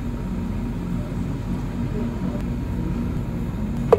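Milk pours into a plastic blender jug.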